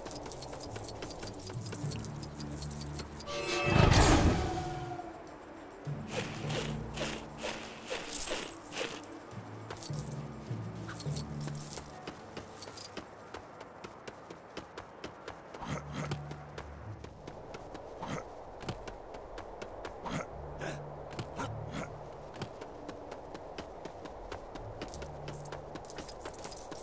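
Quick footsteps patter on grass and rock.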